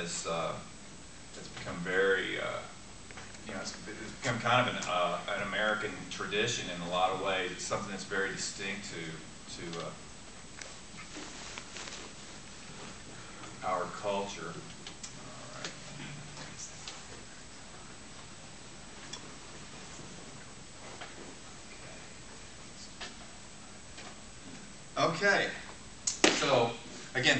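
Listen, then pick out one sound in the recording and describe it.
A young man speaks calmly in an echoing room.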